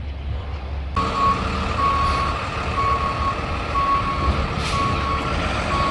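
A box truck's engine idles.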